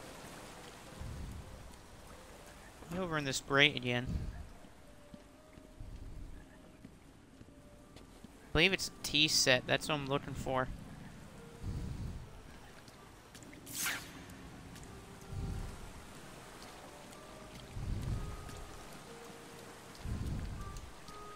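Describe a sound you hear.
Footsteps tread slowly on damp ground.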